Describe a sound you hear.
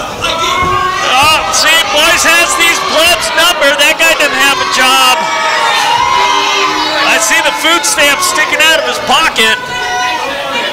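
Children and adults in a crowd shout and cheer excitedly.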